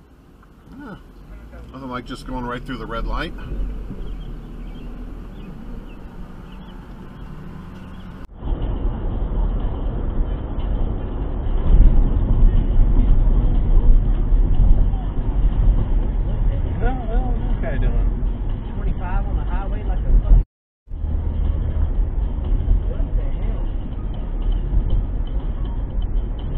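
A car engine hums steadily with road noise rumbling from inside the car.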